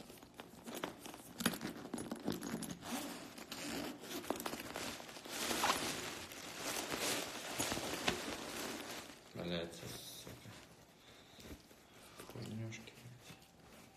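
A bag's fabric rustles as someone rummages inside it.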